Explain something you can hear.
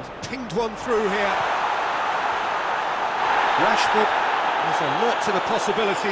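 A stadium crowd roars loudly.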